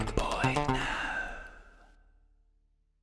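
A young woman sings a held note into a microphone.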